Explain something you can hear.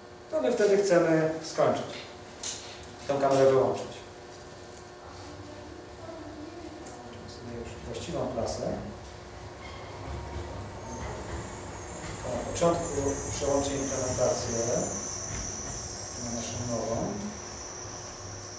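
A man speaks calmly through a microphone, pausing often.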